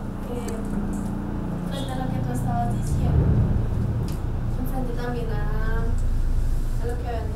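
A young woman speaks through a microphone over a loudspeaker.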